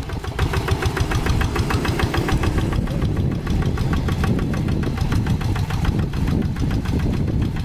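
Mud and water splash under a tractor's wheels.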